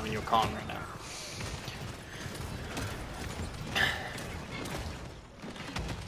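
Game sound effects of abilities and blasts pop and whoosh in a fight.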